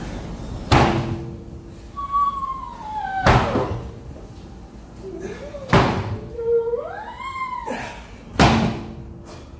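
A heavy tyre thuds down onto concrete.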